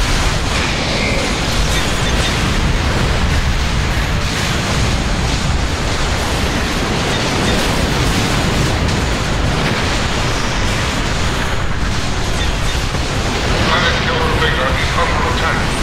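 Space weapons fire and explosions boom repeatedly.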